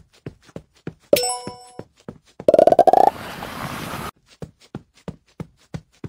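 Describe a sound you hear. Short popping game sound effects repeat in a quick rhythm.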